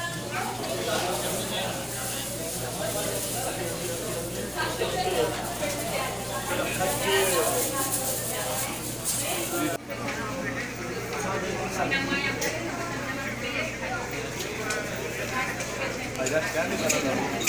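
Several men talk over one another in a busy indoor crowd.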